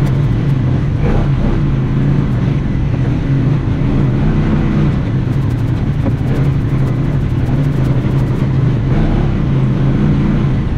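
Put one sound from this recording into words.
An off-road vehicle engine rumbles steadily close by.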